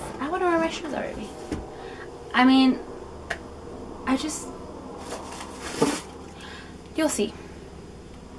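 A young woman speaks expressively up close, with short pauses.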